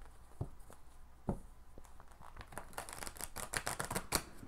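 Playing cards flick and riffle together as they are shuffled.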